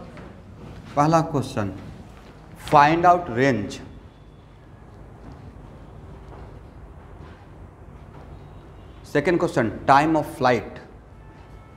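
A man speaks in short bursts, close by.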